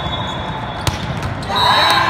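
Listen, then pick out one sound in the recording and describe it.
A volleyball is spiked with a sharp slap in a large echoing hall.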